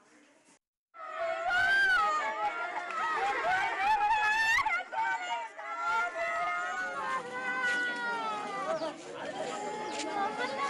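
A woman wails and sobs loudly.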